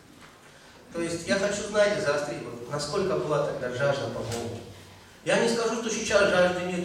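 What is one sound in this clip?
A middle-aged man speaks with animation into a microphone over loudspeakers in an echoing hall.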